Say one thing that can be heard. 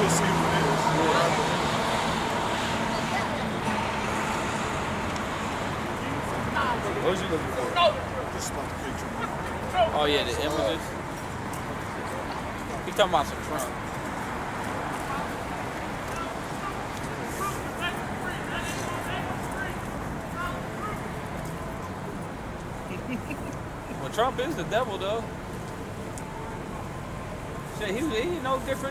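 City traffic rumbles steadily in the background.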